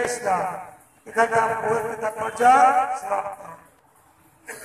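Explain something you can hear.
A woman chants loudly in a high, sung voice nearby.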